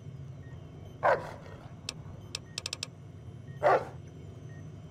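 A robotic dog barks.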